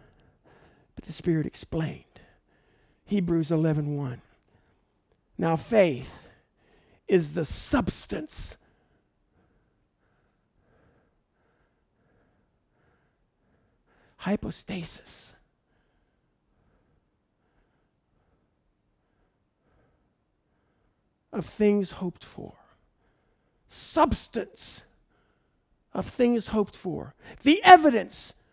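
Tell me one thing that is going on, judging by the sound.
A middle-aged man speaks calmly through a headset microphone, in short phrases with long pauses.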